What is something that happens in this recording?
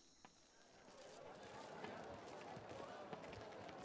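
A crowd murmurs faintly in the distance.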